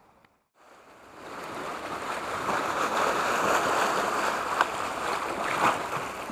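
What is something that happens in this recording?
Sea waves wash over rocks.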